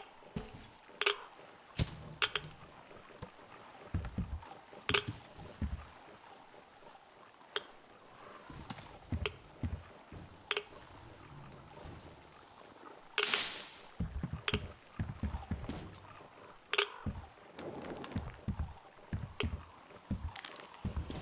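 Footsteps thud on a hollow wooden floor.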